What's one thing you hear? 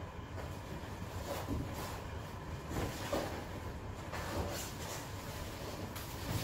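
Fabric rustles and scrapes in bursts.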